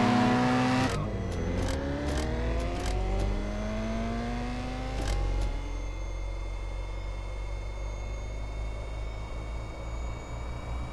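A car engine roars and climbs in pitch through the gears as it accelerates.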